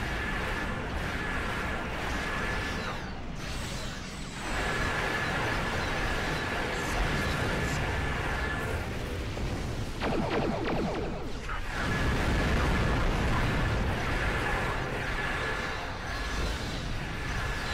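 Laser beams fire in rapid bursts.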